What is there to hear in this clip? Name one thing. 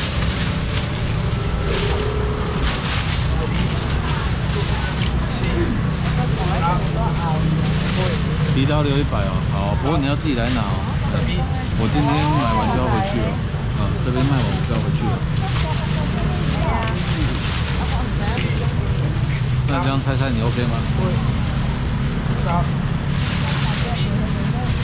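Voices of a busy crowd chatter all around.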